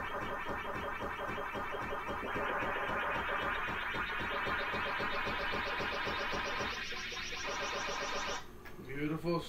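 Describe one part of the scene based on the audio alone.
An electronic game tune warbles steadily, rising in pitch.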